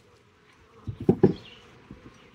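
A wooden hive frame knocks against the box.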